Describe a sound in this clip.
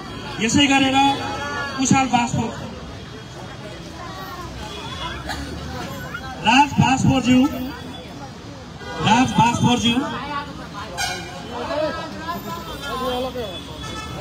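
A crowd murmurs outdoors in a busy street.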